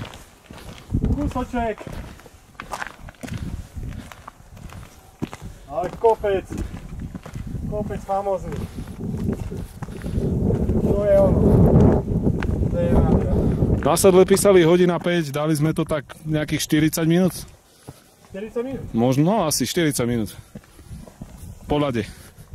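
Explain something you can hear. Footsteps crunch on rocky gravel.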